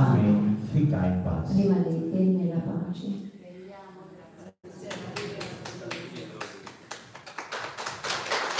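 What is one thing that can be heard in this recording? A man speaks into a microphone with animation, amplified through loudspeakers in a large room.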